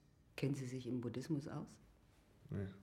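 A man speaks softly and calmly, close by.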